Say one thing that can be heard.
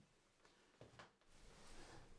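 A hand rustles through papers in a suitcase.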